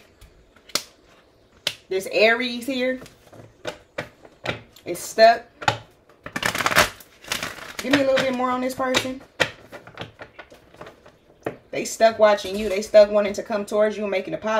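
Playing cards are shuffled with soft slaps and riffles.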